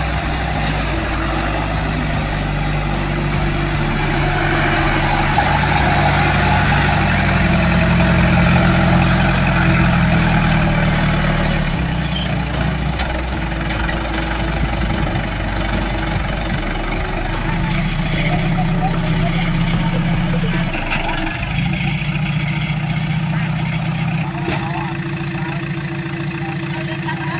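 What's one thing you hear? An engine chugs loudly and steadily.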